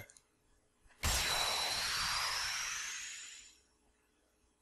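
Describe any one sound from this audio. A bright shimmering chime swells and slowly fades.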